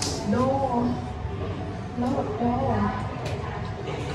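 A door knob rattles as a young woman turns it.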